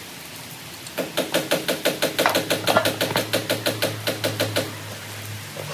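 An impact wrench hammers in rapid bursts.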